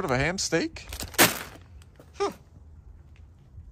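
A wrapped package thumps as it lands among rubbish.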